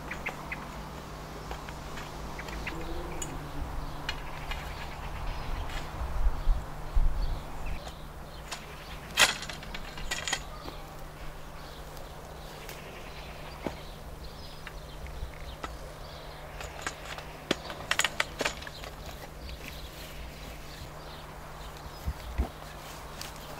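A plastic pipe clicks and knocks as it is handled.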